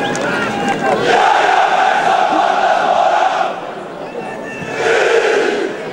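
A large stadium crowd sings and chants loudly in unison.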